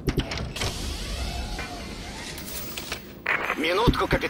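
Steam hisses from a machine.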